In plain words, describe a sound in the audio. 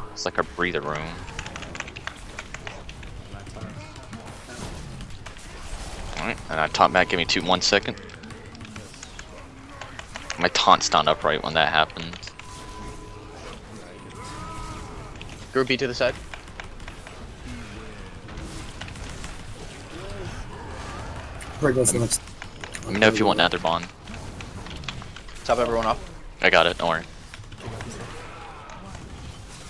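Fantasy battle sounds clash and crackle with spell effects.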